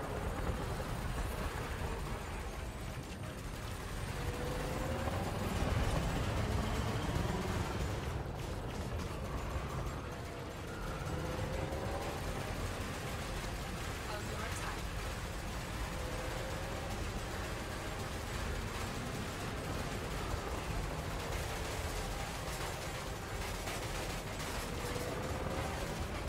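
A spaceship engine hums low and steady.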